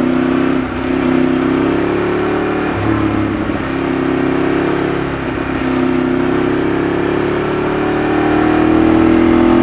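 A Ducati 848 V-twin sport bike cruises and shifts through gears.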